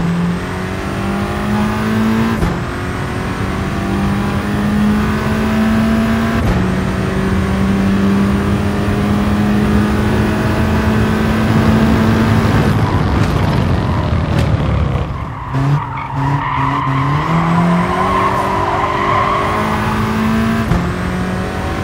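A race car engine revs high and drops with each gear change.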